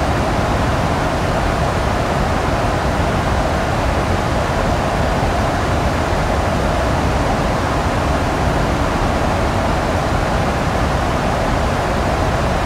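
Jet engines and rushing air roar steadily around a cockpit.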